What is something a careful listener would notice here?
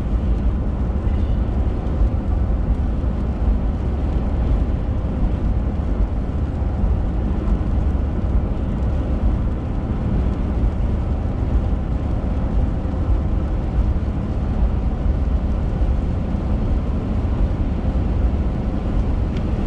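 A car's engine hums steadily.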